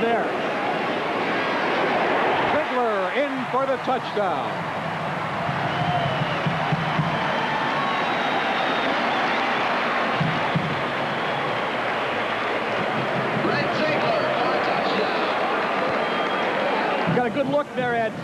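A large crowd cheers and roars loudly in an open stadium.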